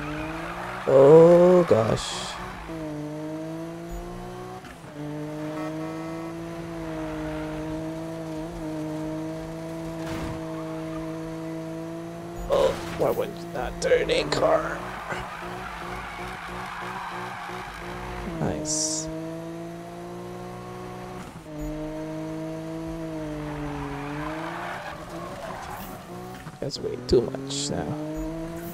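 Tyres screech as a game car drifts.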